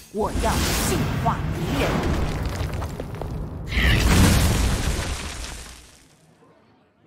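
Magical blasts crash and rumble in a burst of crackling effects.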